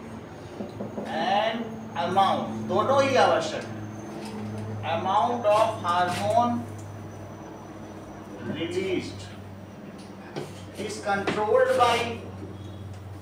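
A man speaks calmly nearby, as if explaining.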